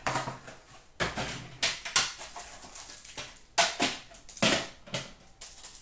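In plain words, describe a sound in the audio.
Hands rustle and tap plastic card packs and boxes close by.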